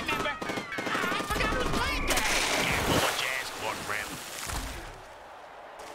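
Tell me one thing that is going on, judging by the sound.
Game figures clash with loud crunching impacts.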